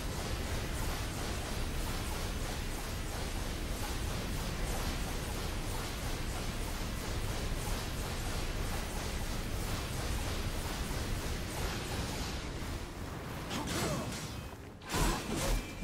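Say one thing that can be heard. Flames roar steadily.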